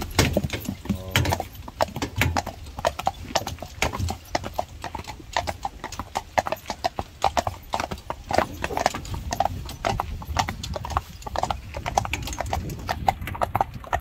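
Horse hooves clop steadily on a paved road.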